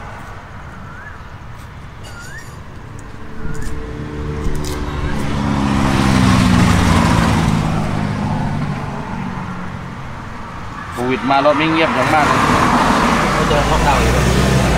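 Thick fruit peel tears and rips as it is pulled apart by hand.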